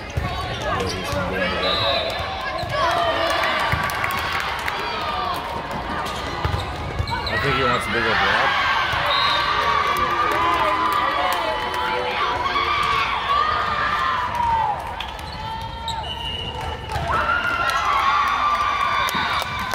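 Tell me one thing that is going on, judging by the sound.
Young women call out and shout to each other in a large echoing hall.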